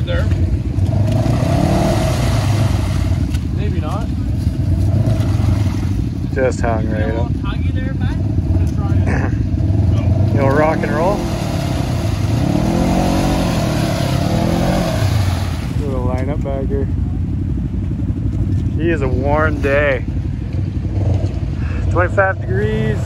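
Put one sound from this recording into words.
An off-road vehicle's engine rumbles and revs hard close by.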